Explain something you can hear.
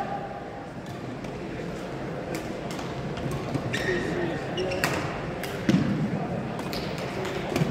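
Rackets strike a shuttlecock back and forth in a large echoing hall.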